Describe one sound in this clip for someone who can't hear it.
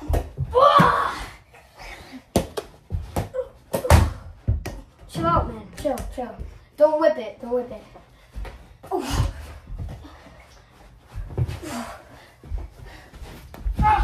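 A ball bounces and thuds on a hard floor.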